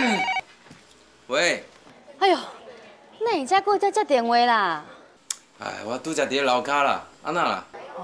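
A man speaks into a telephone.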